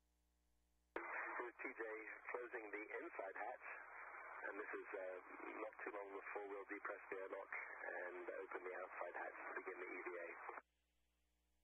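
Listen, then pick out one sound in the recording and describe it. A man speaks calmly over a crackly radio loudspeaker.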